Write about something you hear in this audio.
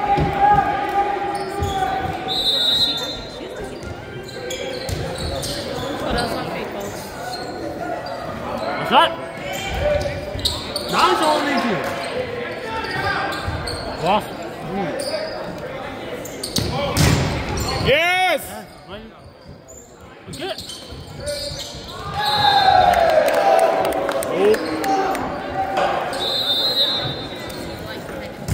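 Young players and spectators call out and chatter in a large echoing gym.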